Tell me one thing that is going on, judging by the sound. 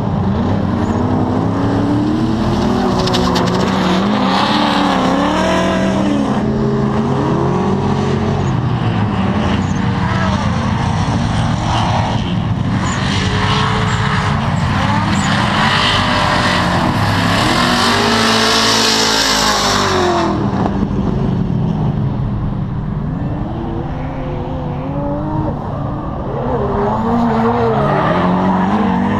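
Racing car engines roar and rev loudly in the distance.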